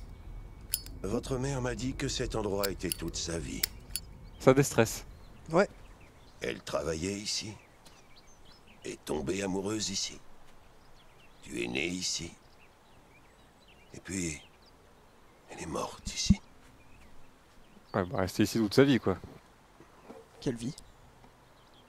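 A man speaks calmly and clearly nearby.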